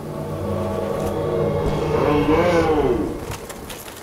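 A sword slashes and strikes an enemy.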